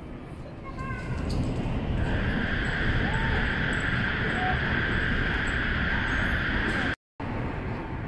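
A high-speed train rushes past with a loud roar and a high whine.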